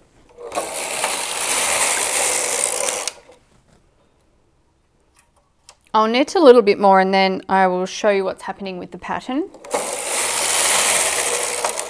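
A knitting machine carriage slides across with a rushing, rattling whir.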